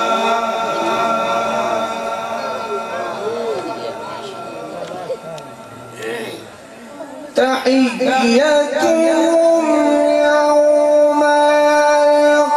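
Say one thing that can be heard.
A young man sings a devotional chant into a microphone, heard through loudspeakers.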